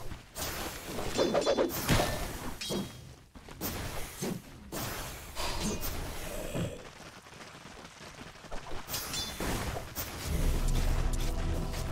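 Magic spells crackle and whoosh as game characters battle.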